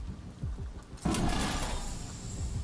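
A heavy door slides open with a rushing hiss.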